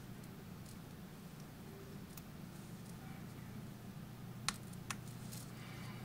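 A small plastic stitch marker clicks softly.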